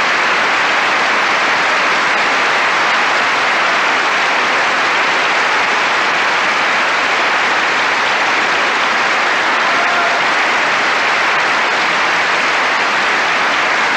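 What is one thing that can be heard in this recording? A large crowd applauds loudly and steadily in a big hall.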